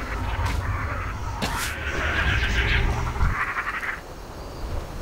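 A weapon swings and strikes with loud combat hits.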